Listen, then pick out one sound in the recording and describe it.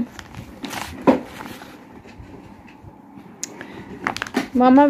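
A plastic sleeve crinkles as it is handled.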